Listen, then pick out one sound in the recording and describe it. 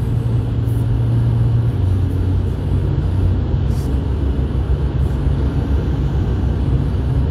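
A car engine hums steadily with road rumble from inside the car.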